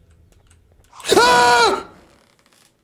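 A man cries out loudly into a microphone.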